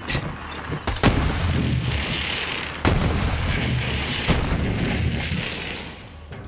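A gun fires in bursts of shots.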